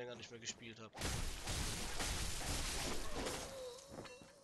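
A blade slashes into flesh with a wet, heavy splatter.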